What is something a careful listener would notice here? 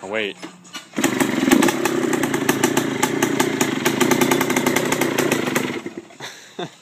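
A small engine starts and idles with a rapid buzzing rattle, then cuts off.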